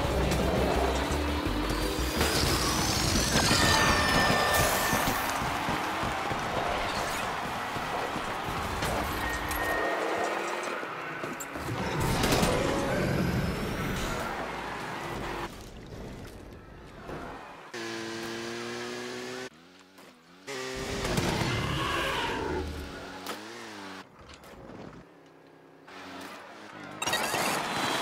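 A small kart engine buzzes and whines as it races.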